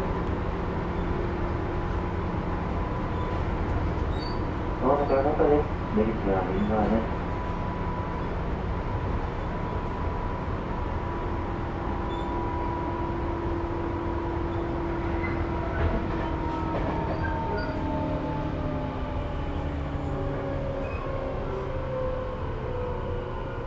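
An electric train hums steadily on the tracks.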